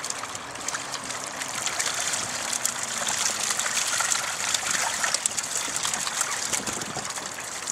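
Fish and water splash out as a tub is tipped over into a lake.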